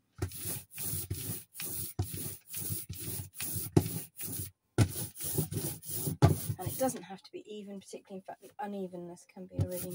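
A roller rolls stickily through wet ink.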